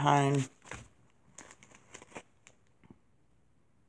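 A plastic food package crinkles as a hand handles it.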